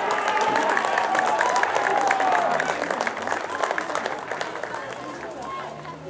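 Players cheer and shout outdoors, then the cheering dies down.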